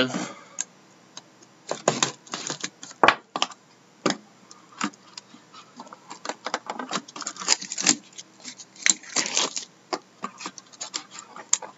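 Plastic wrapping crinkles and tears as a box is opened.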